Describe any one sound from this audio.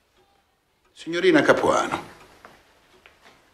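A second man speaks briefly nearby.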